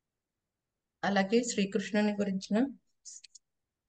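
A woman reads aloud through an online call.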